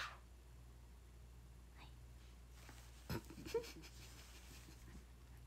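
A young woman speaks softly and close up.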